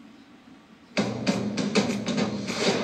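Orchestral music starts suddenly and plays loudly through a television speaker.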